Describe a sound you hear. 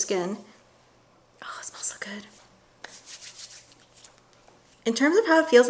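A young woman speaks calmly and close up.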